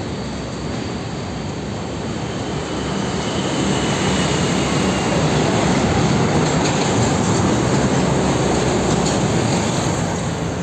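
A heavy diesel truck hauling a container trailer passes by.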